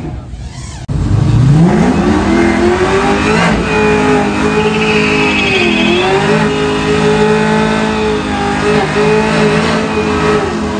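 A second pickup truck's engine revs up high and holds during a burnout.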